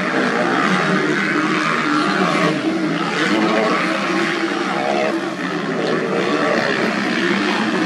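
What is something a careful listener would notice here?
Dirt bike engines buzz and whine loudly outdoors.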